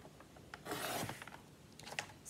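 A paper trimmer blade slides through paper with a short scrape.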